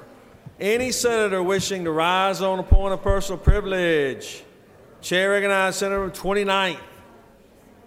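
A man speaks calmly and clearly through a microphone.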